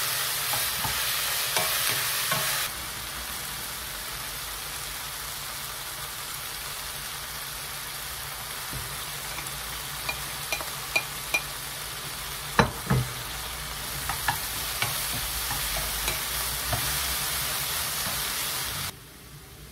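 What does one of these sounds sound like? A wooden spoon taps and scrapes against a pan.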